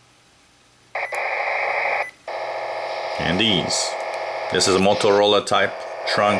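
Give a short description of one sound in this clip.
A radio scanner hisses with loud static.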